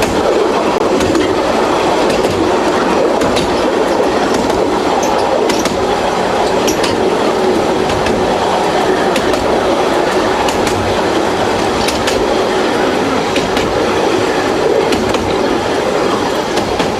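A train rumbles steadily along a track.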